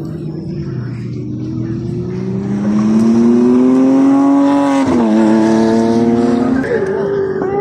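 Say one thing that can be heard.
A sports car engine roars loudly as the car accelerates past.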